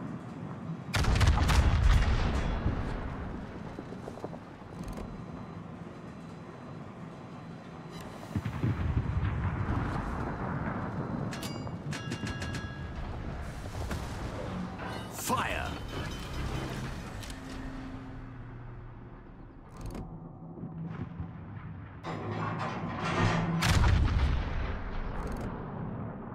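Heavy guns fire with deep booming blasts that rumble away.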